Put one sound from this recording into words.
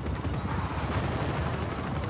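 Missiles whoosh away one after another.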